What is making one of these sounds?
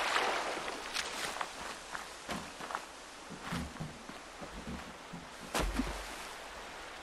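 Footsteps scuff on dirt and rock.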